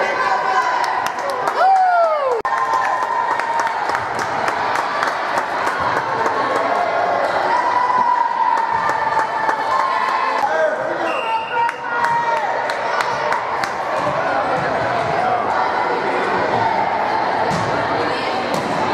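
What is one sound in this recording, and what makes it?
Young girls chatter and call out in an echoing gym.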